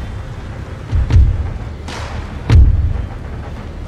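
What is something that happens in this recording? Cannon shots boom loudly.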